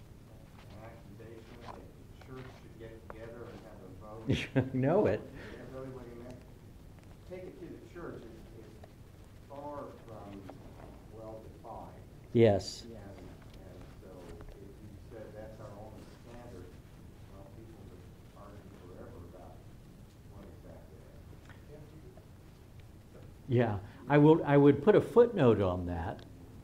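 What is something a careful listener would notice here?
An older man speaks calmly into a microphone, then with rising emphasis.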